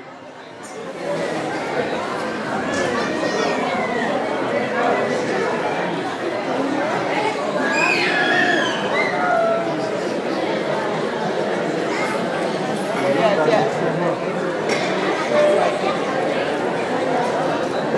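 A large crowd of men and women chatters all around in an echoing hall.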